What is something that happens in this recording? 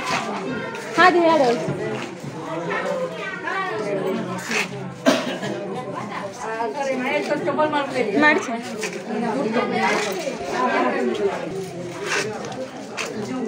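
Several women talk over one another close by, with animation.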